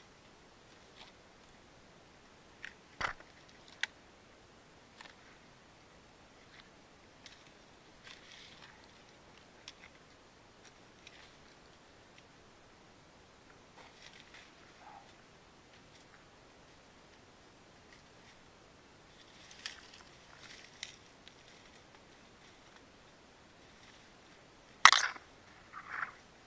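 Dry bamboo leaves and twigs rustle and crackle close by as a hand pushes through them.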